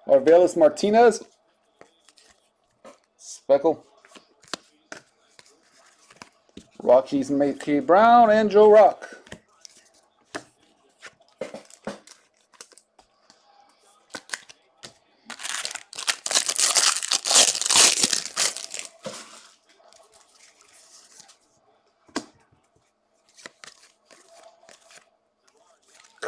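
Cards flick and slide against each other as they are handled.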